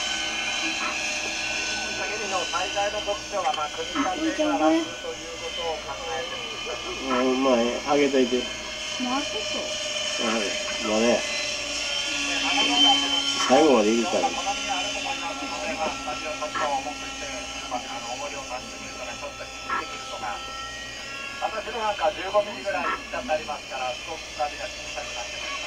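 A model helicopter engine whines steadily overhead.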